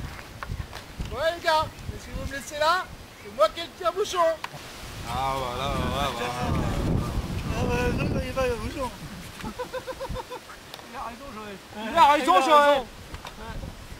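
Several men talk and laugh with animation outdoors.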